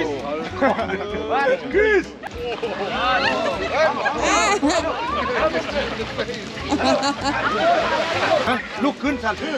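A group of men and women chatter and call out outdoors.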